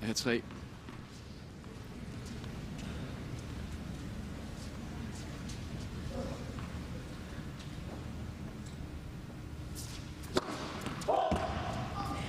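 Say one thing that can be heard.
A large crowd murmurs softly in a big echoing arena.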